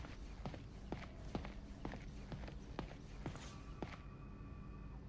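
Footsteps walk at an even pace on a hard floor.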